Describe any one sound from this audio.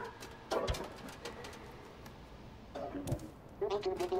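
A cat's paws land with soft thumps on a metal roof.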